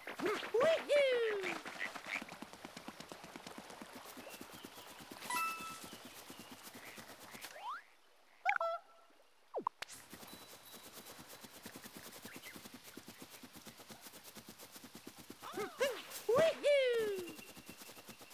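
A cartoon character's footsteps patter quickly on grass.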